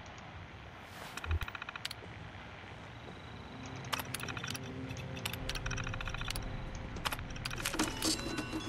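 An old computer terminal clicks and chirps rapidly as text prints.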